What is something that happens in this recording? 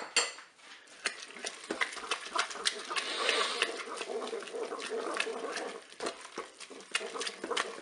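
A wooden spatula stirs sticky pasta in a pot with wet squelching.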